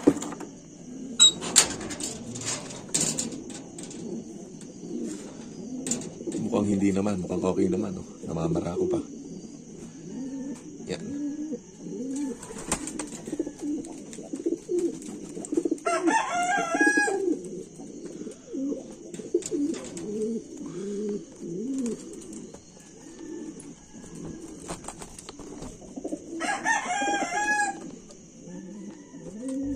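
Pigeons coo steadily in low, throaty rolls nearby.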